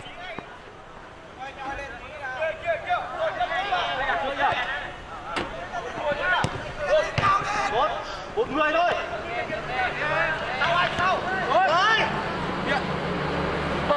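Players kick a ball outdoors.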